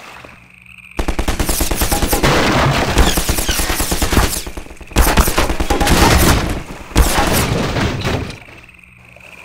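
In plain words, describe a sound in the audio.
Gunshots crack in rapid, loud bursts.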